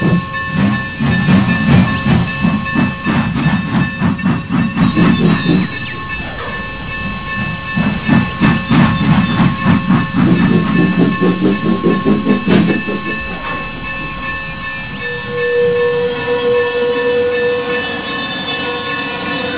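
Train wheels rumble over the rails.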